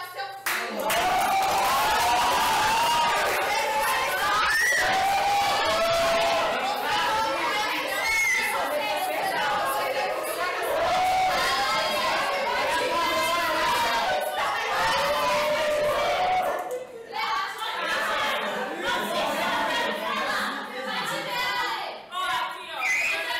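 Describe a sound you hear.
A young woman sings with animation.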